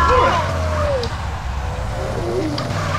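A car crashes into a wooden pole with a thud.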